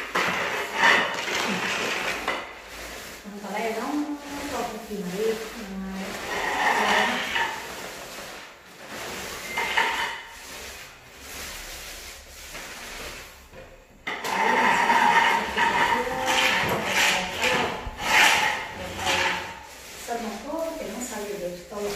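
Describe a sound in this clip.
Paint rollers swish and rasp against a wall.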